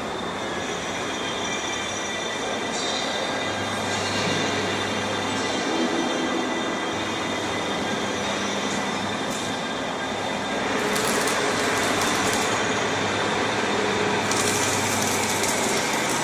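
Roll forming machines hum and clatter steadily in a large echoing hall.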